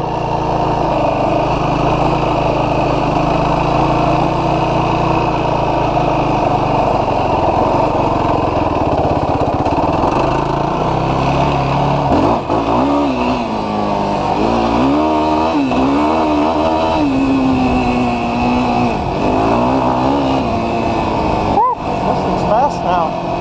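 An engine drones and revs up and down as a quad bike rides along.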